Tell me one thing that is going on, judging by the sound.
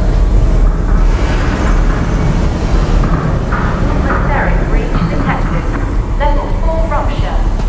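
A strong wind roars and howls steadily.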